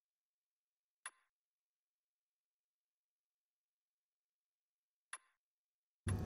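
A menu selection clicks softly.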